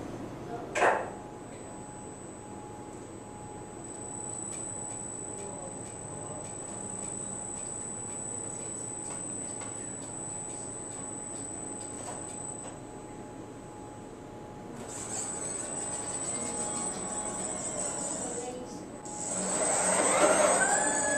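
A robotic arm whirs with a steady high hum as it slowly moves.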